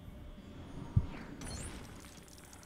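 A game object bursts apart with a deep thud.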